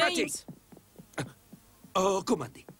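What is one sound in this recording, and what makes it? Footsteps climb wooden stairs.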